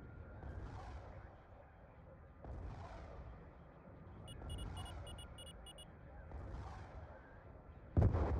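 Missiles launch again and again with deep rumbling whooshes, about every two seconds.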